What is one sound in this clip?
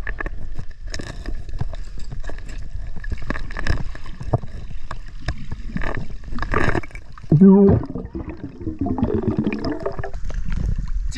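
Gloved hands scrape and knock against rock underwater, with muffled crackling.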